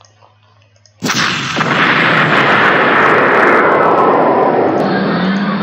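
An explosion booms and rumbles loudly.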